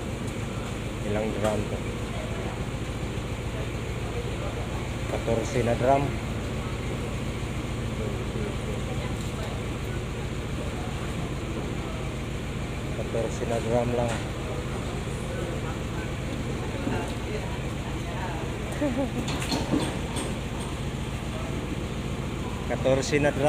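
Men talk nearby in bursts.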